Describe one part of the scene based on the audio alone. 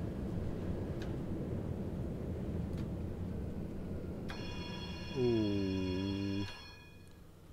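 A tram rumbles along its rails and slows to a stop.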